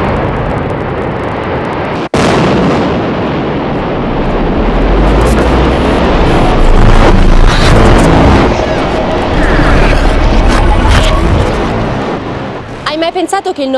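Rock blasts and a cliff face collapses with a deep, rumbling roar.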